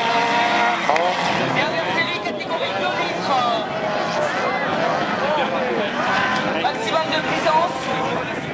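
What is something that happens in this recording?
Men in a nearby crowd talk and call out.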